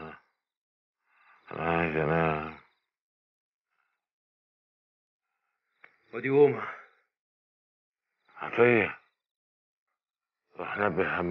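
A man speaks in short, earnest phrases with pauses between them.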